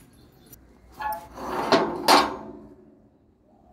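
A metal padlock rattles against a gate.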